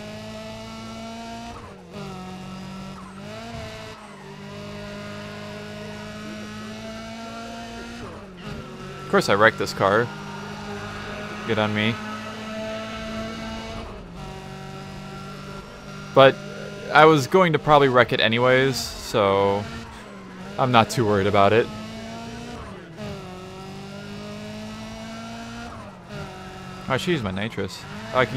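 A car engine drones steadily and revs.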